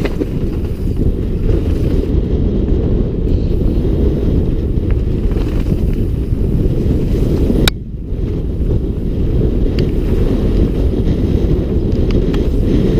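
Wind buffets a microphone with a loud, steady rumble.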